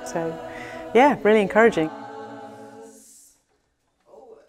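Several women sing together in a resonant room.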